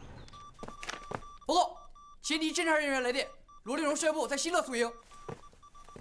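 A young man reports in a clear voice.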